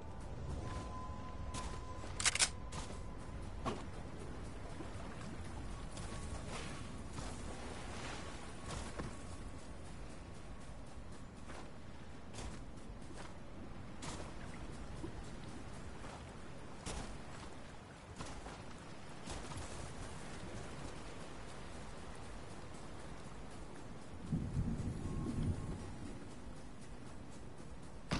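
Footsteps run across sand.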